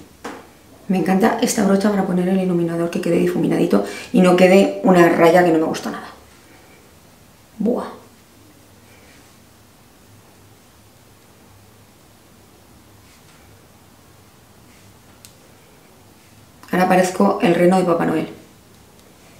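A middle-aged woman talks calmly and close to a microphone.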